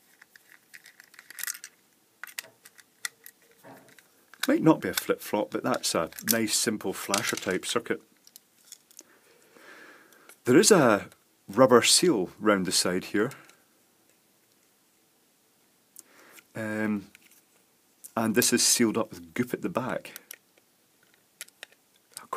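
A small screwdriver clicks and scrapes against screws.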